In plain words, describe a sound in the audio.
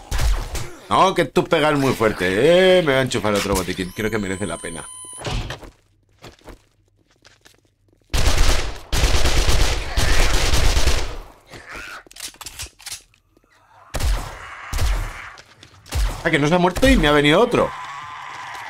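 A zombie growls and moans.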